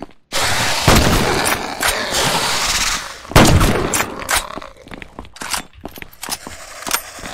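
Weapons clash and blasts boom in a fight.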